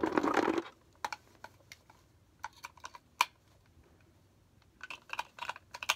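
Plastic clicks and rattles as a toy is handled.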